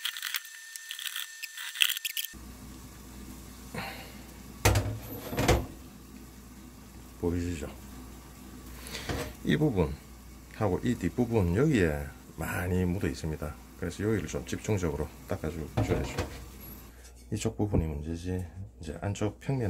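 A paper towel rubs against a metal pan.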